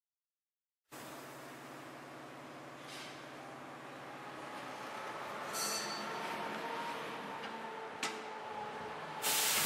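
A tyre changer machine hums and whirs.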